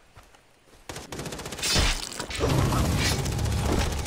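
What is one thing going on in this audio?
A heavy blow lands with a thud during a close struggle.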